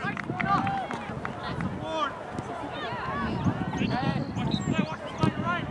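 Young players shout across an open field.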